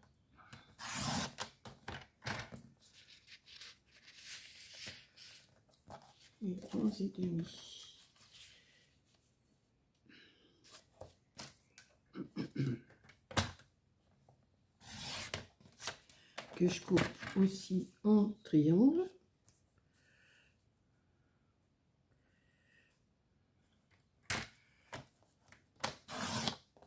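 Card stock rustles and slides.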